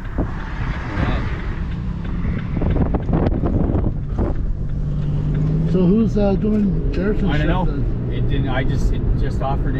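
A car engine hums and tyres rumble on the road from inside the car.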